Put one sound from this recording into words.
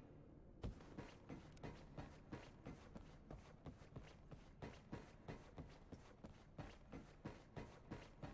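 Footsteps clank quickly and steadily on a metal floor.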